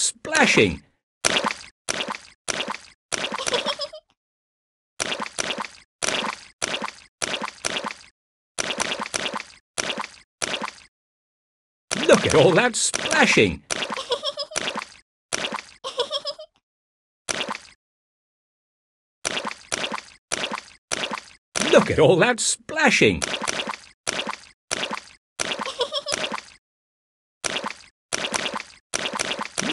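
Feet splash into muddy puddles in quick, repeated bursts.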